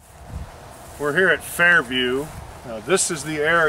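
A middle-aged man speaks calmly close by, outdoors.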